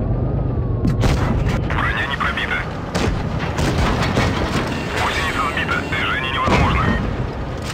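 Tank cannons fire with loud booming shots.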